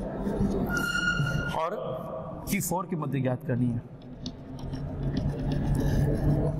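A man speaks steadily, explaining like a lecturer.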